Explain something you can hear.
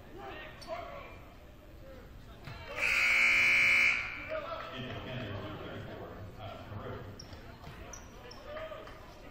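Spectators murmur and call out in a large echoing gym.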